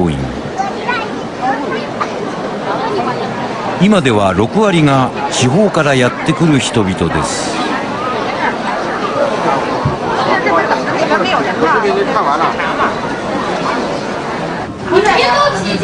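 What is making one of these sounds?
A crowd of people chatter loudly in an echoing hallway.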